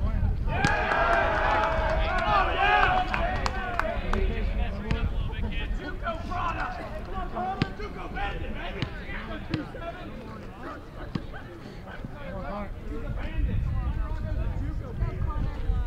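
Young men cheer and shout encouragement nearby.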